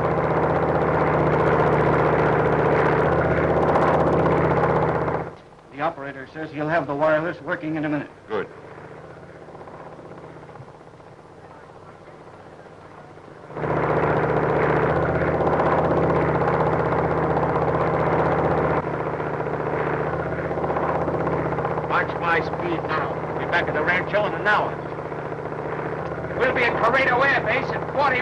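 A propeller airplane engine drones.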